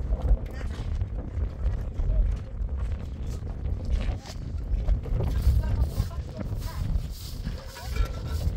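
Wind blusters against the microphone outdoors.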